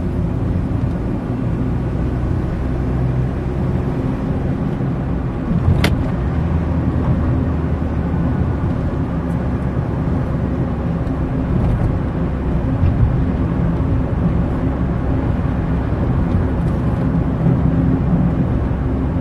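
A car drives along with a low engine drone and tyre rumble on asphalt, heard from inside.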